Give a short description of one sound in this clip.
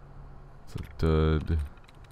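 A computer terminal gives a short, loud electronic buzz.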